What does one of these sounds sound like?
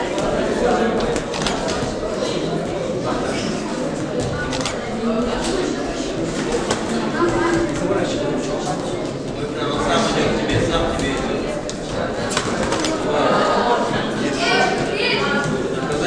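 Boxing gloves thud against each other and on the boxers in quick blows.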